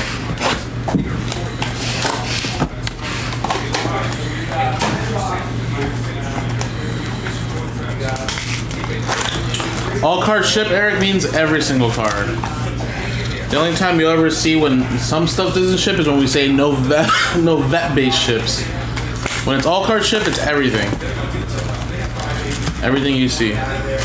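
Cardboard boxes and card packs rustle and tap as hands handle them.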